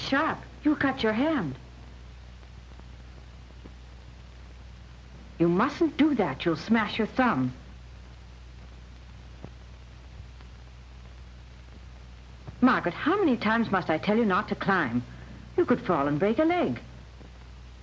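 A young girl speaks softly and close by.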